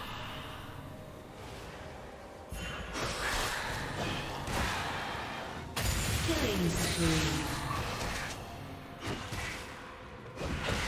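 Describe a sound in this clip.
Spell effects burst and crackle in a fast game battle.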